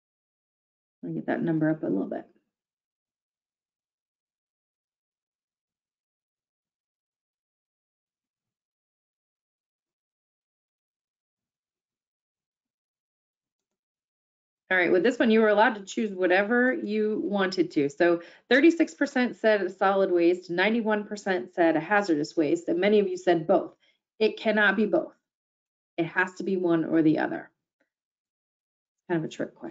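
A woman speaks calmly into a microphone, heard through an online call.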